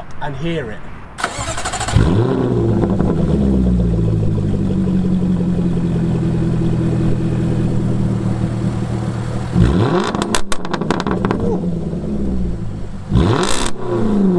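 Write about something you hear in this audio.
A sports car engine idles with a deep, steady burble.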